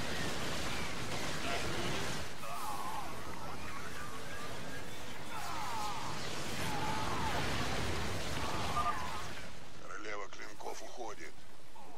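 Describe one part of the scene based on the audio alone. Gunfire rattles and explosions boom in a battle.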